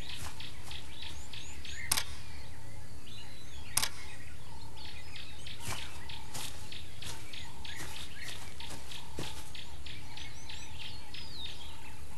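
A tiger's paws pad across grass.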